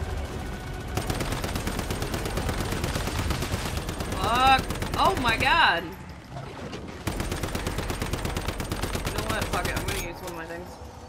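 Rapid gunfire rattles loudly and steadily.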